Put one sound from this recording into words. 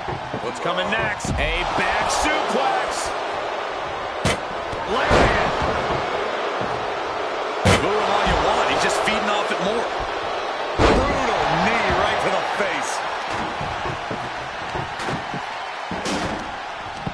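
Heavy bodies slam onto a wrestling ring with loud thuds.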